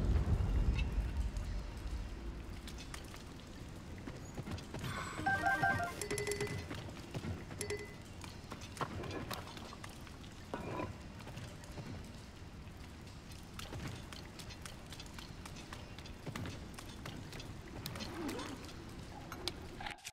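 Footsteps patter on rock.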